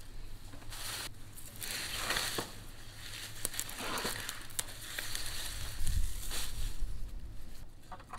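Leafy stalks rustle as they are handled.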